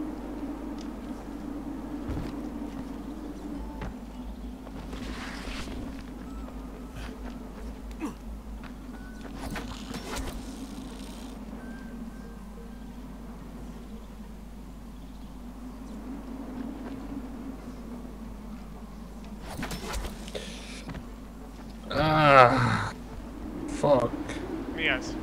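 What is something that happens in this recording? Footsteps scuff and thud on rock.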